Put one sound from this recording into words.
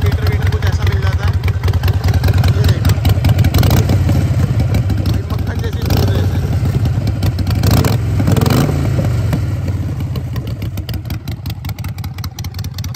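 A motorcycle engine idles with a deep, throbbing rumble.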